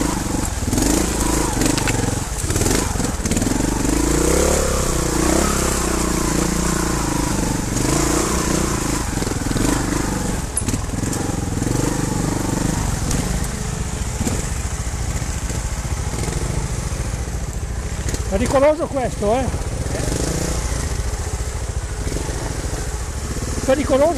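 Tyres crunch over rocks and dry leaves.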